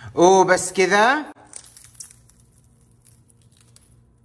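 Crisp fried pastry crackles as it is torn apart.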